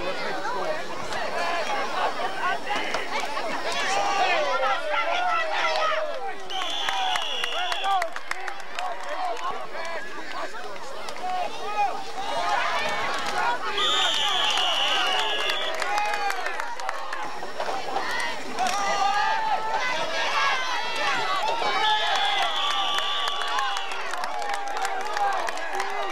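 A crowd of people shouts and cheers outdoors.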